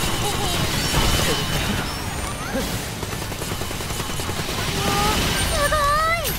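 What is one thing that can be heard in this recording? A fiery explosion roars.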